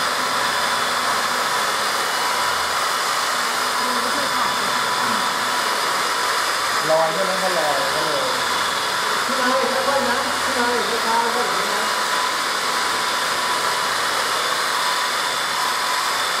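Electric dual-action polishers whir as they buff car paint.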